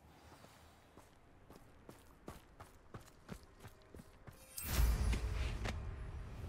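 Quick footsteps crunch across frosty ground.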